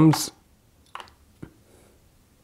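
A dart is set down with a light click on a small metal scale tray.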